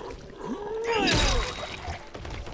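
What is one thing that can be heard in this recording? A blunt weapon strikes a body with a heavy thud.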